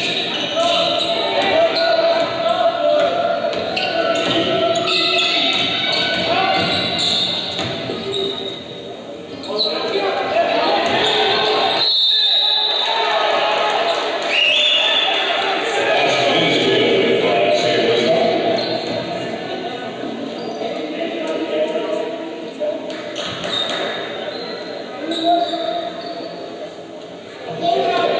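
A crowd cheers and chatters in an echoing gym.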